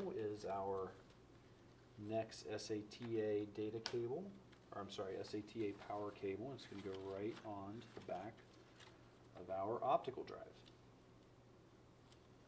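Cables rustle and click as they are handled.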